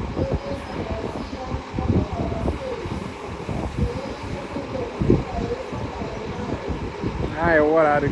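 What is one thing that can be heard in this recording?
A bus engine rumbles as a coach rolls slowly past.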